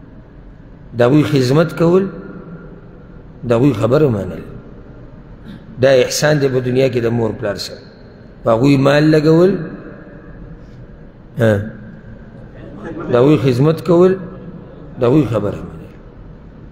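A man speaks calmly in short phrases through a microphone, with pauses between them, in a reverberant room.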